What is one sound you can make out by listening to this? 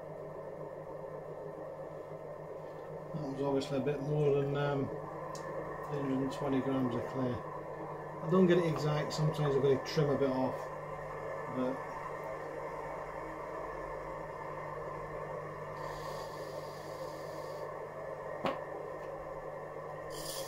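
A potter's wheel hums steadily as it spins.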